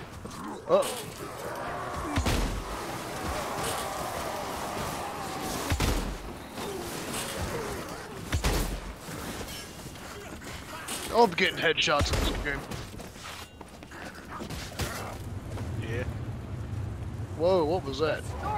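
Blades clash and hack in a fierce melee.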